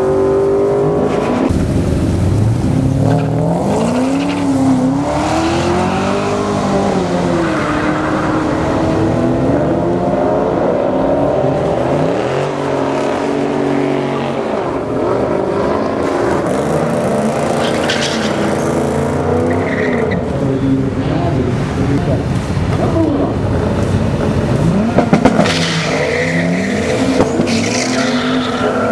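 A car engine revs loudly and rumbles, rising and falling in pitch.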